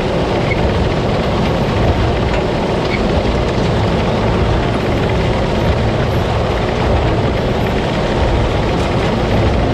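Chopped stalks spray and rustle as a harvester spits them out.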